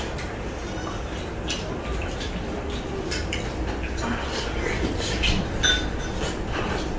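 A man chews food loudly and smacks his lips close by.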